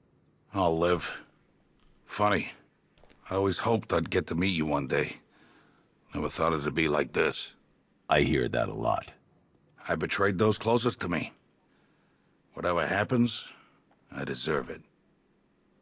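A man speaks close by in a deep, low voice, in short bursts.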